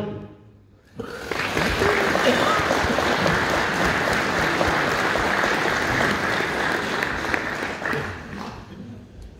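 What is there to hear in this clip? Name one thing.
Men clap their hands in applause.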